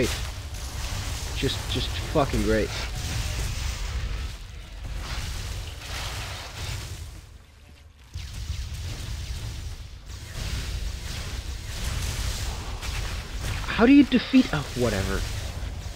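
Game spells crackle and whoosh during combat.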